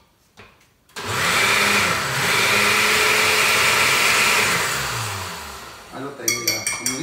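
A blender whirs loudly, then winds down.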